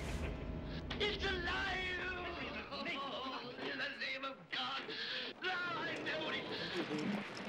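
A man speaks with animation through a television speaker.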